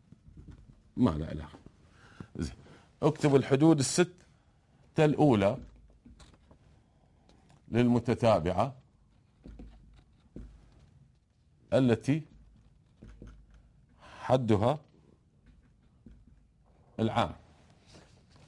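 A man speaks calmly in short phrases with pauses.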